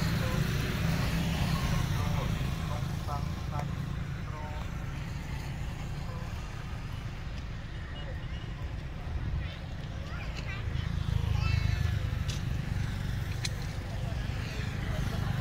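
A motorbike engine hums as it rides past.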